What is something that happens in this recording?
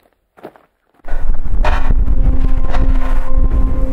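Wind gusts outdoors, buffeting the microphone.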